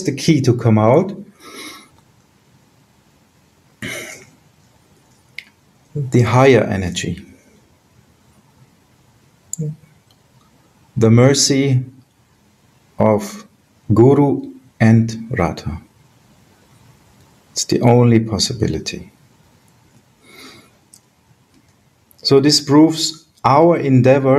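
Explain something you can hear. A middle-aged man speaks calmly in short phrases over an online call.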